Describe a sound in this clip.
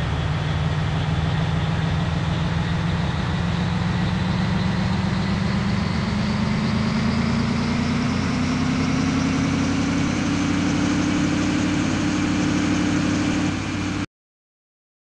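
A bus engine drones and rises in pitch as it speeds up.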